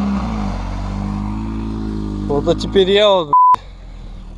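A quad bike engine drones and revs as it drives away.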